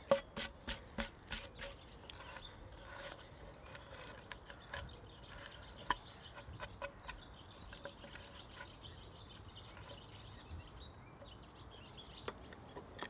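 A knife carves into cedar wood.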